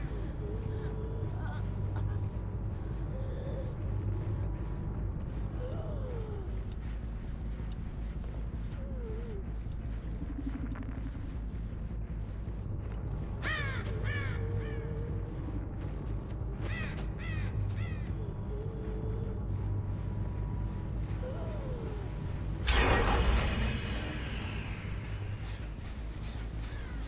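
Footsteps thud steadily on a hard floor.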